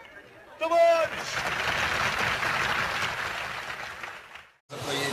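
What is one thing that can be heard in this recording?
A crowd applauds with loud clapping.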